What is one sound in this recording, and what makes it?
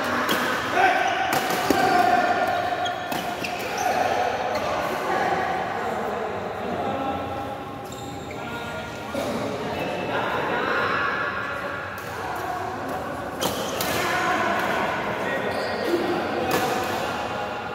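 Men call out and chatter across the echoing hall.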